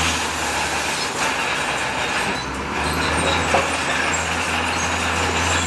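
Rocks scrape and tumble under a bulldozer blade.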